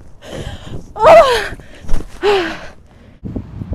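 A young woman shrieks loudly up close.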